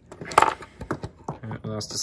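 Plastic parts click together as they are handled.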